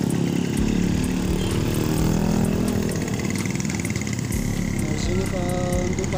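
A motorised rickshaw putters past.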